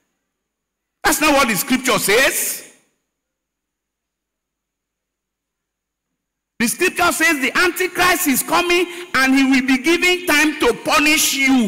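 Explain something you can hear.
A man preaches with animation through a microphone.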